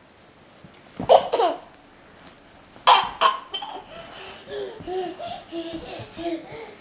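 A toddler squeals and babbles nearby.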